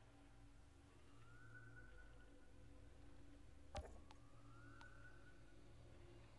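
Soft rising electronic chimes play.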